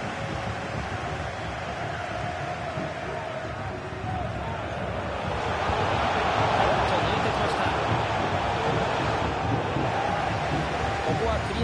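A large crowd cheers and chants steadily, swelling louder partway through.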